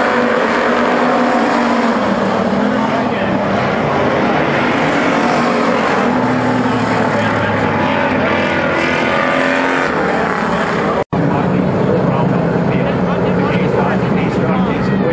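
Race car engines roar loudly as cars speed past.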